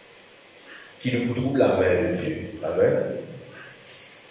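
An elderly man speaks into a microphone through loudspeakers in an echoing hall.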